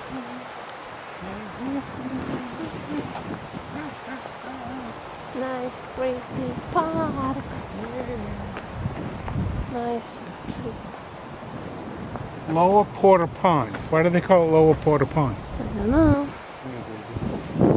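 A woman speaks calmly and cheerfully, close by.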